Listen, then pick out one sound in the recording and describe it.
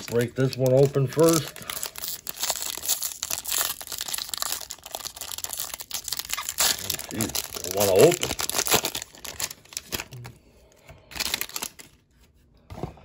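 A foil wrapper crinkles and tears close by.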